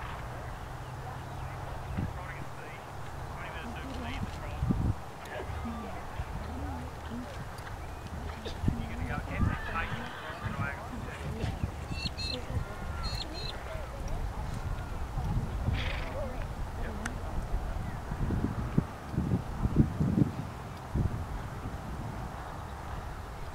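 Horse hooves thud softly on grass at a trot.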